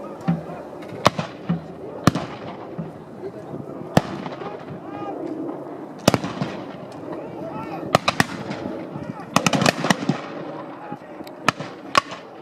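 Muskets fire in loud, sharp cracks, one after another and in ragged volleys, outdoors.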